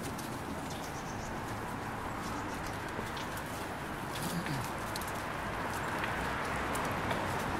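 Several people murmur nearby in low voices.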